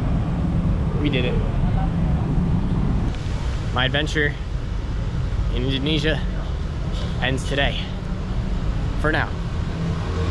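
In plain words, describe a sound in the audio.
A young man talks into a microphone with animation, close up.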